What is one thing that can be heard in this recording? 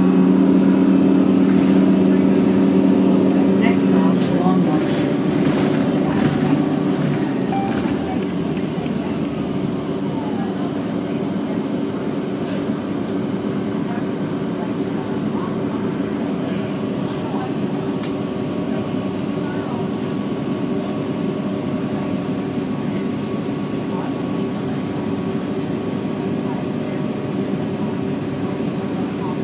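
A bus engine drones loudly from inside, then settles to a steady low idle.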